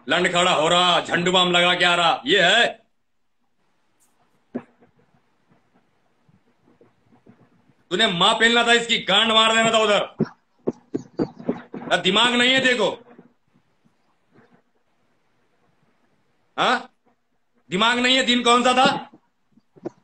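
A man talks with animation over a phone microphone, in short bursts.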